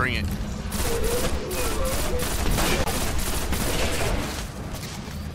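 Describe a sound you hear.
Rapid gunfire blasts in quick bursts.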